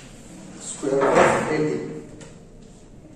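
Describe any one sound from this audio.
A man speaks briefly, close by.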